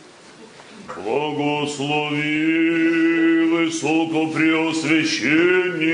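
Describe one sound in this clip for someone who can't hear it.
A group of men sing a slow chant together in an echoing hall.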